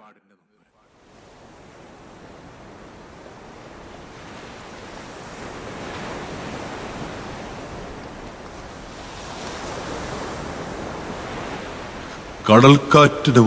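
Ocean waves wash steadily over a loudspeaker.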